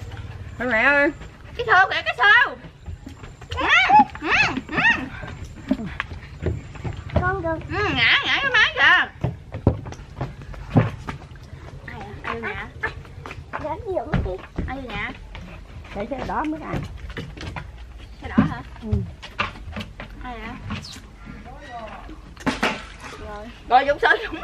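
Several women talk and exclaim with animation nearby.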